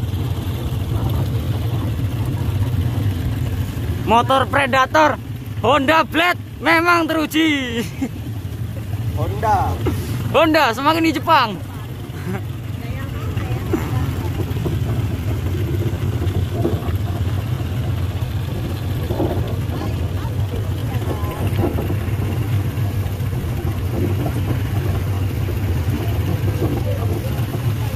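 Motorbike engines hum steadily as they ride along.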